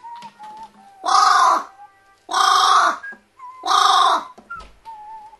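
A crow caws loudly and harshly three times, close by.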